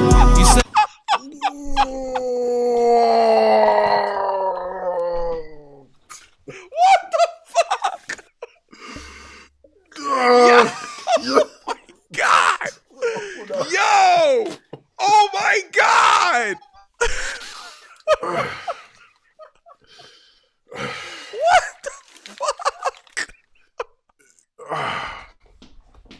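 A second man laughs and shouts with excitement over a microphone.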